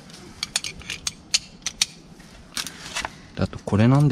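A plastic sheet crinkles and rustles.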